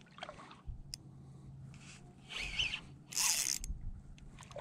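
A fishing reel whirs as its handle is turned.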